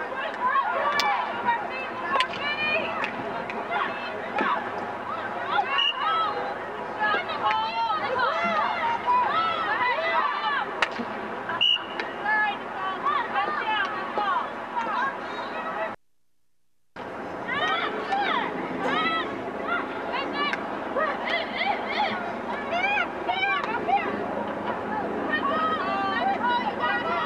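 Hockey sticks clack sharply against a ball.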